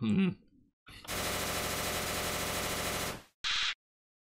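A video game gives off a steady harsh buzzing tone.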